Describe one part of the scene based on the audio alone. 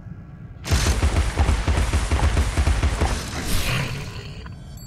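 A rapid mechanical gun fires in quick bursts.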